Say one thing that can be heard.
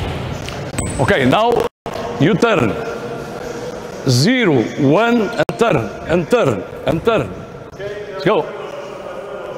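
A man calls out instructions across the hall.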